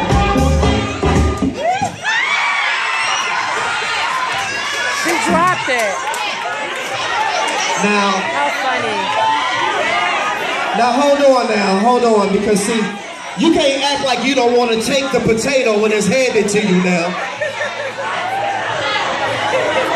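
A crowd of women chatters and laughs loudly nearby.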